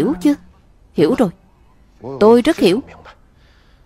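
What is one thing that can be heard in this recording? A man answers haltingly, close by.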